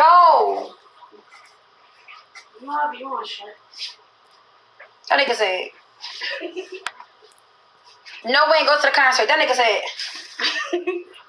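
A young woman talks casually and close to a phone microphone.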